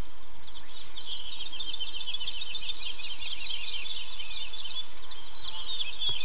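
Water pours from a watering can onto a hedge.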